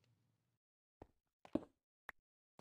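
A block cracks and breaks with a short knock.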